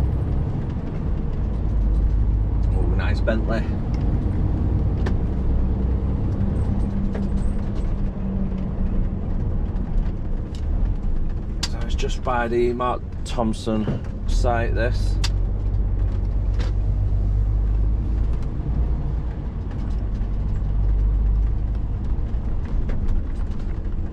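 A heavy truck engine rumbles steadily as it drives.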